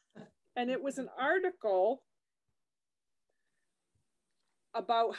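A middle-aged woman speaks calmly into a microphone, heard as on an online call.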